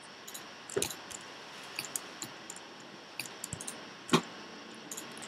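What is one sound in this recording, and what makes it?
Stone blocks crack and break with short taps as a pickaxe mines them.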